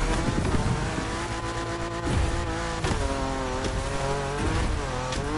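A car engine revs hard and rises in pitch through gear changes.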